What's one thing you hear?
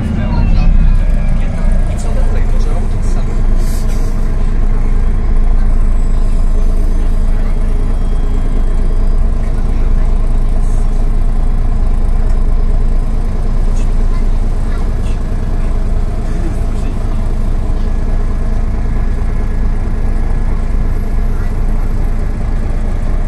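A bus engine rumbles steadily while the bus drives.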